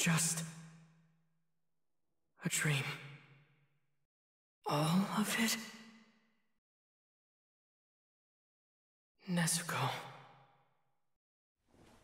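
A young man speaks softly in short phrases, with a heavy echo.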